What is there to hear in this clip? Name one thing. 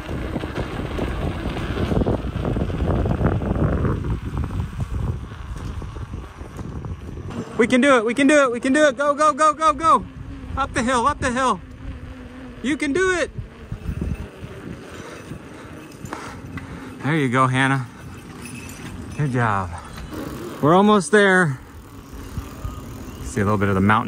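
Bicycle tyres hum softly on a paved path.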